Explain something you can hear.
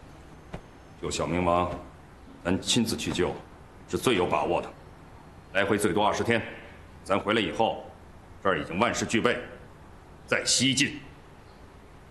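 A man speaks firmly and calmly, close by.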